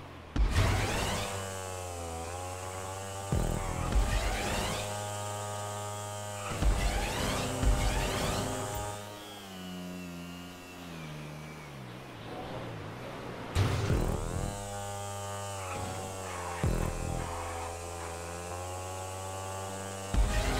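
A motorcycle engine revs hard, rising and falling in pitch as gears change.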